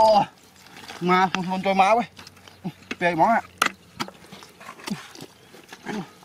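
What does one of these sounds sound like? Boots squelch and suck in thick wet mud.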